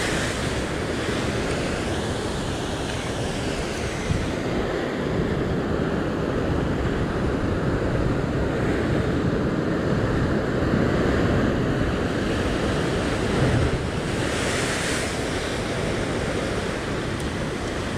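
Strong wind blows and buffets outdoors.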